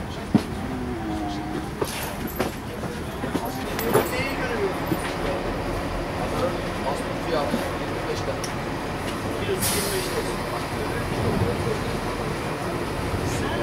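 A crowd murmurs and chatters in the background.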